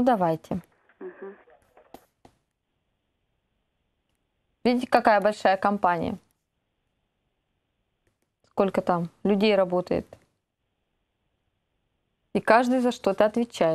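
A woman speaks calmly and clearly into a microphone, in short bursts with pauses.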